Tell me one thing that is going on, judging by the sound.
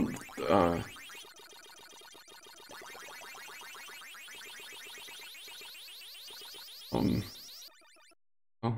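A siren-like drone from an arcade maze game hums beneath the play.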